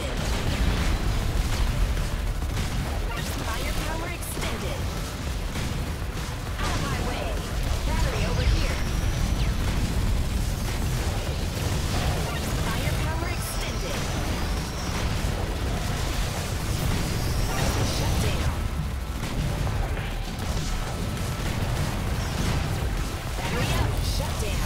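Electronic game music plays steadily.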